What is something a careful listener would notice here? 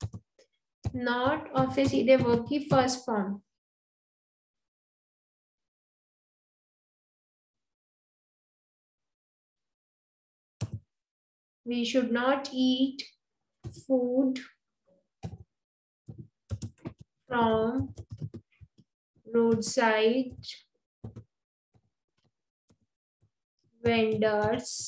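A woman speaks calmly and clearly into a microphone, with pauses.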